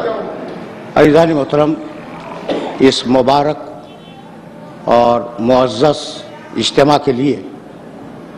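An elderly man speaks slowly and solemnly into a microphone.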